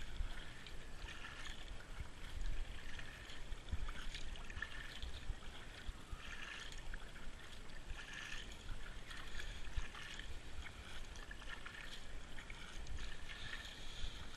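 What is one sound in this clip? A paddle splashes and dips into calm water in a steady rhythm.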